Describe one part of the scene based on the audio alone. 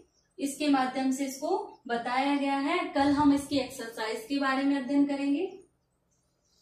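A young woman speaks clearly and steadily, close by.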